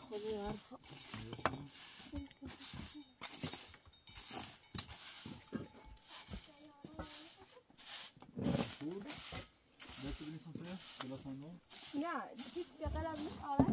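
A broom sweeps ashes with quick, repeated brushing strokes.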